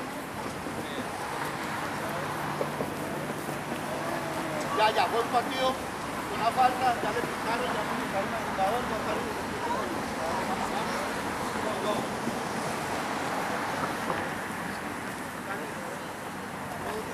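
Children shout and call out at a distance outdoors.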